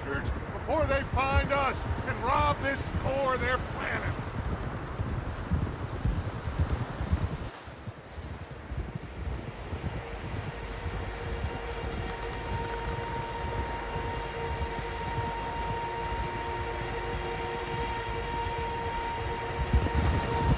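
Wind blows steadily in a snowstorm.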